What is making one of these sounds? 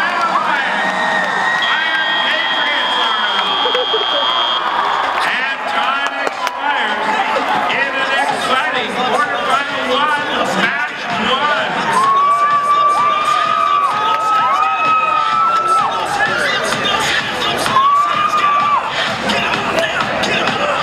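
A large crowd cheers and shouts in a big echoing arena.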